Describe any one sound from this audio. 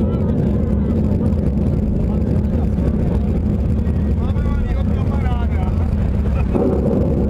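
Loud live band music booms and distorts through large loudspeakers in a big echoing hall.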